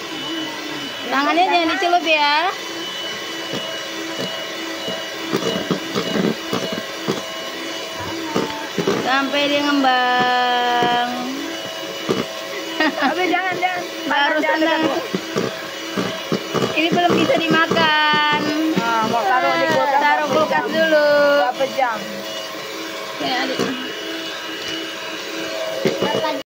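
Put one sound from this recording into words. An electric hand mixer whirs, its beaters whisking batter in a plastic bowl.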